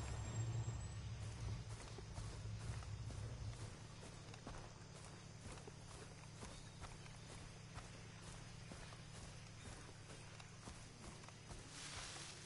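Footsteps crunch steadily through grass and leaves.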